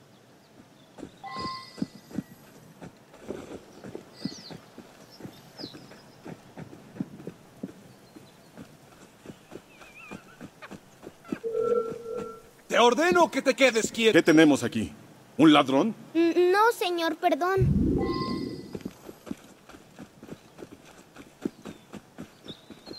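Quick footsteps crunch on gravel and stone.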